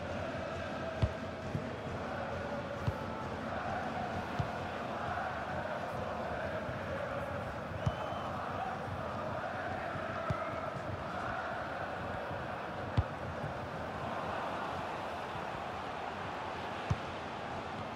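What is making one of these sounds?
A football is kicked with dull thuds now and then.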